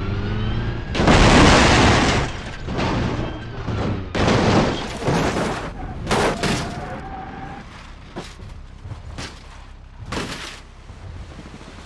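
Metal crunches and bangs as a car crashes and tumbles.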